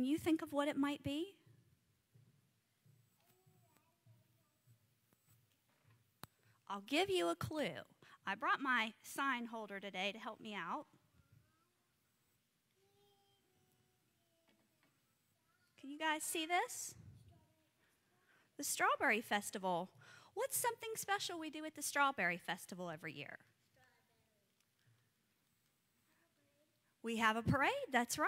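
A young woman speaks with animation into a microphone, heard through loudspeakers in an echoing room.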